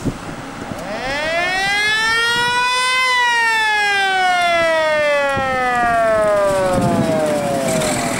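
A fire engine's siren wails as it drives past, its pitch dropping as it goes by.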